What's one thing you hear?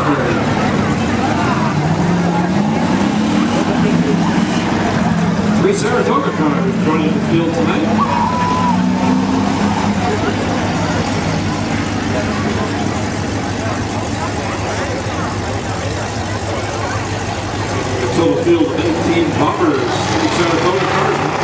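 Race car engines roar and drone around an outdoor track.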